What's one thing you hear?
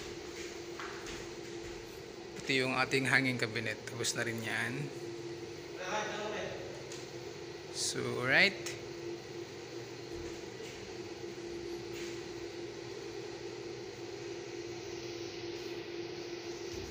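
An air conditioner hums steadily.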